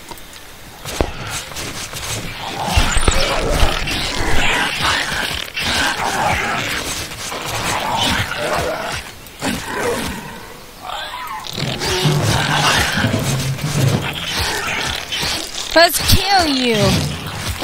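Creatures screech and snarl as they fight.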